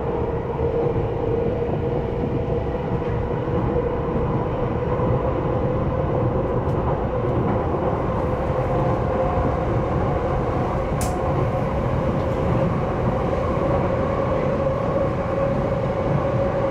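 A train rumbles steadily along the tracks with a low droning hum.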